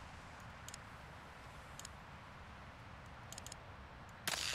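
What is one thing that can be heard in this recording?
Menu buttons click softly several times.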